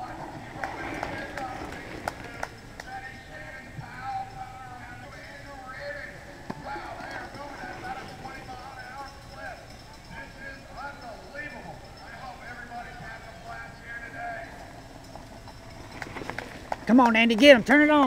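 Bicycle tyres crunch over gravel as a rider passes.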